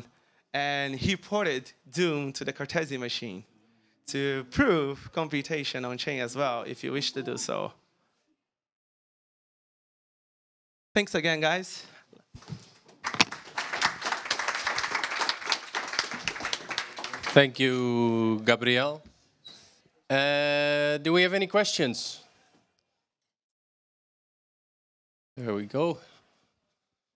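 A man speaks steadily through a microphone, in short bursts with pauses.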